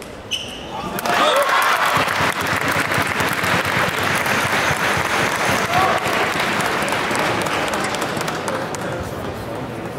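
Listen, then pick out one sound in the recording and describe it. A large crowd cheers and applauds loudly in a big echoing hall.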